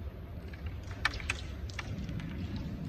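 A striker flicks into carrom pieces with sharp clicks on a wooden board.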